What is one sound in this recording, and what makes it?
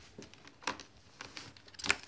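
A laptop lid closes with a soft click.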